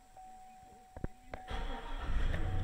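A car engine cranks and starts.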